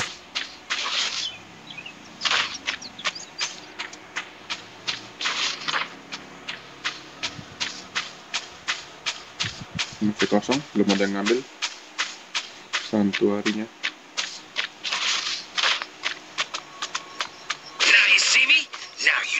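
Footsteps patter quickly and evenly over the ground.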